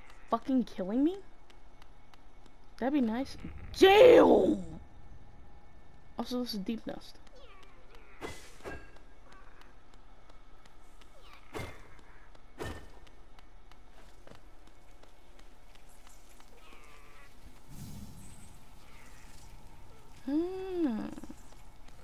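A small flying creature cries out in short, warbling chirps that bend up and down.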